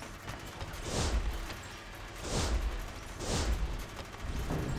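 A soft whoosh swells and fades several times.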